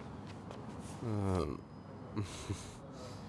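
A man talks quietly at a distance in a room.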